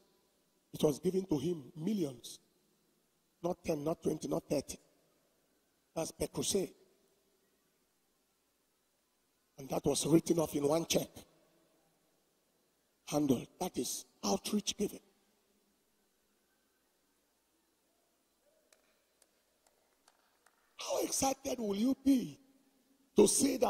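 A man speaks with animation into a microphone, in bursts with pauses between.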